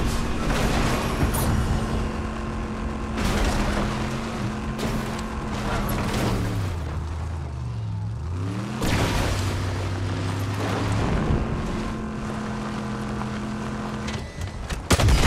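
A vehicle engine hums steadily and shifts in pitch as it drives.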